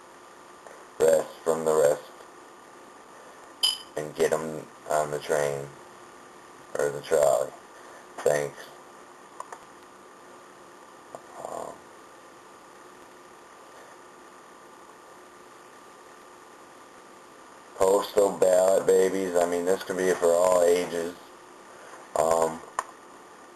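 A young man speaks calmly, close to a microphone, with pauses.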